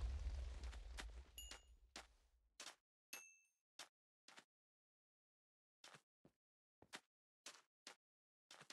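Blocks crunch underfoot in quick, short steps.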